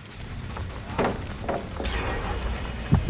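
A blade swishes through the air and strikes.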